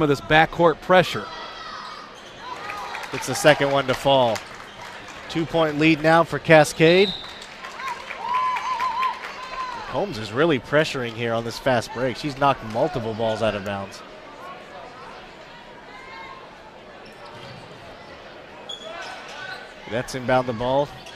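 Spectators shout and cheer loudly in an echoing gym.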